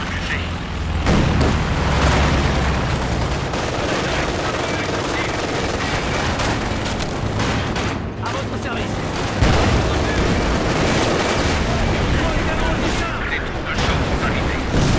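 Gunfire crackles steadily in a battle.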